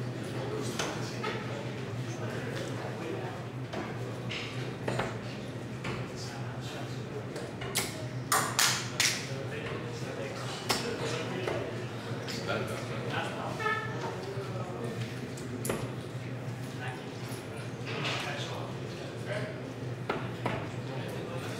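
Darts thud sharply into a dartboard, one after another.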